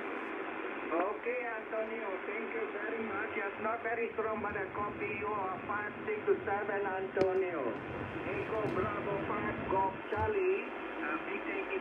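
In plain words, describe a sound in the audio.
A man's voice comes through a radio loudspeaker, thin and crackly.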